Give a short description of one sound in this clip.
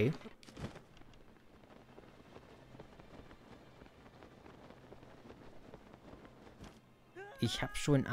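Wind rushes softly past a glider in flight.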